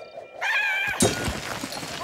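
A sudden burst of sound hits and rings on.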